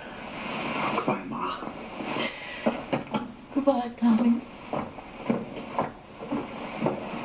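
A woman speaks with emotion nearby.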